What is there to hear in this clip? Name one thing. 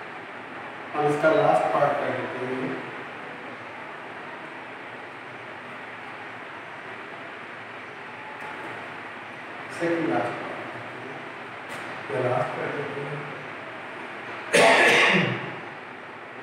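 A man speaks in short phrases close by.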